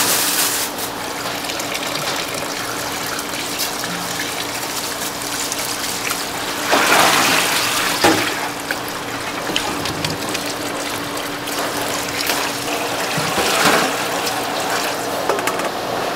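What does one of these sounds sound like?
Tap water runs into a sink.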